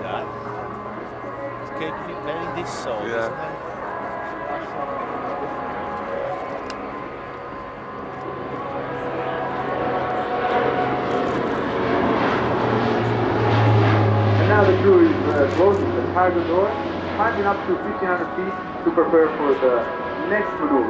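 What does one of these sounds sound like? A propeller plane drones overhead, growing louder as it passes close and then moving away.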